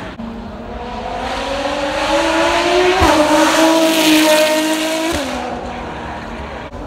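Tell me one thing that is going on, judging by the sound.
A racing car engine roars loudly as the car speeds past, rising and then dropping in pitch.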